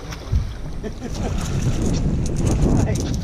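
A fish splashes in the water as a net scoops it up.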